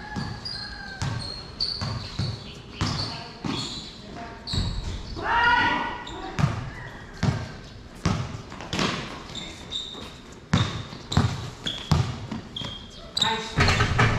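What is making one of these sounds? A basketball bounces repeatedly on a hard court.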